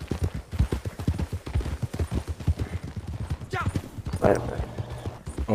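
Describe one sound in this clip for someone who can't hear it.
Horse hooves clop quickly on a dirt track.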